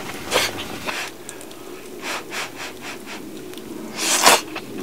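A man slurps hot food noisily.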